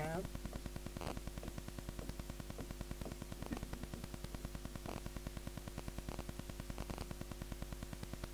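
A pen taps and scratches on a writing board.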